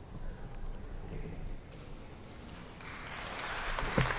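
A violin plays in a large echoing hall.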